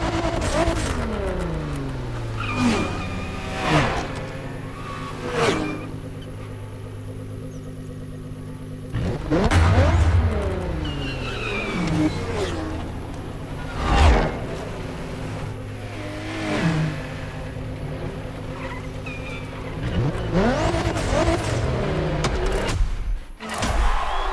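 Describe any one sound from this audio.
A sports car engine idles with a steady low rumble.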